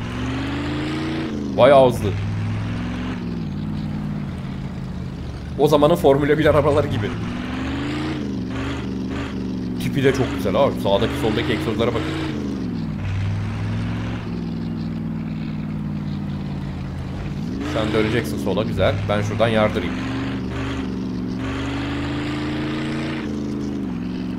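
A car engine drones steadily, rising and falling as it revs.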